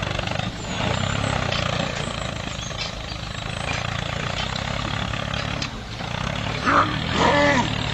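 A toy tractor's motor whirs steadily.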